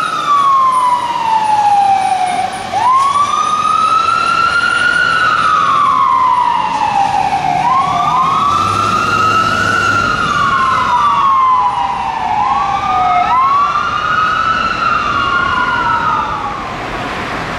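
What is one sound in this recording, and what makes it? A fire truck siren wails close by, rising and falling in slow sweeps.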